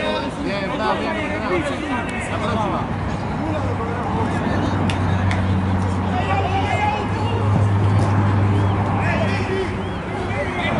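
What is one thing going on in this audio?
Young men shout and call out across an open pitch.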